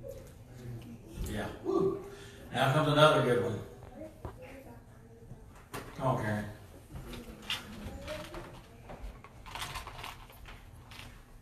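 A middle-aged man speaks with animation to a gathering in a hall with some echo.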